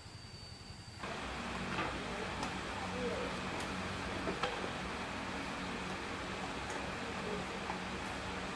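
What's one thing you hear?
A broom sweeps across a floor.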